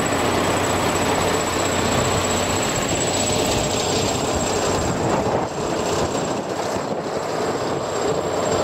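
Strong wind blows and rumbles across the microphone outdoors.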